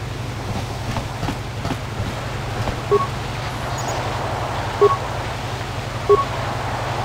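A computer terminal beeps softly a few times.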